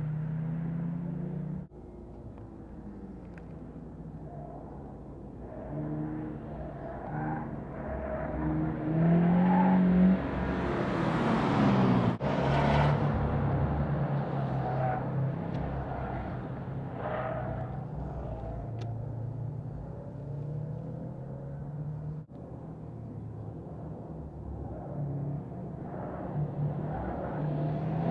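Car engines hum and rev as cars drive past close by.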